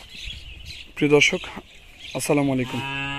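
Sheep bleat loudly close by.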